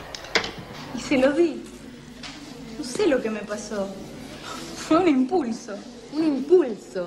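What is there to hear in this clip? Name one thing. Teenage girls chatter with animation close by.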